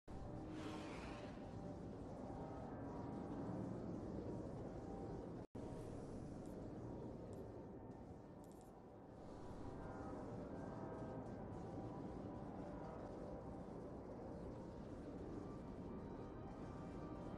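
Spaceship engines roar steadily.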